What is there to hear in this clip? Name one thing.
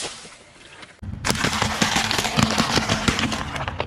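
Eggs crack and squelch under a car tyre.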